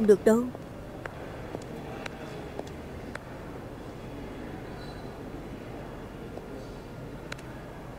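A woman's high heels click on a hard floor.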